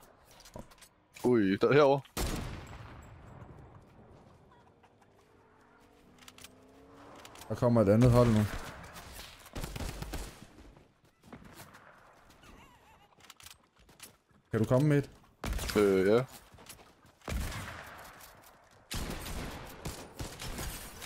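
Gunshots and building sounds from a video game play in quick bursts.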